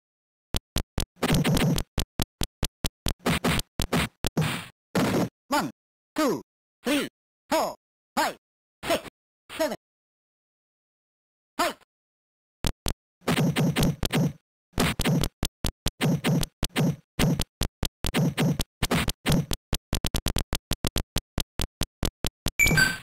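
Retro video game punches land with short electronic thuds.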